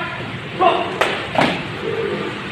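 Boots stamp sharply on a hard floor.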